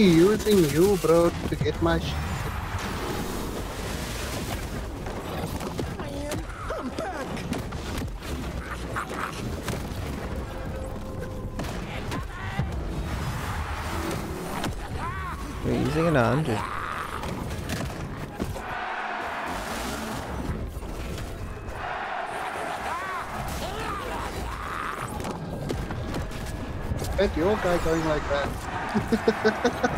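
Game hits and blasts crack and whoosh in quick bursts.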